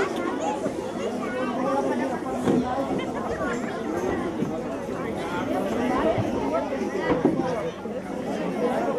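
A young girl speaks through a microphone and loudspeakers in an echoing hall.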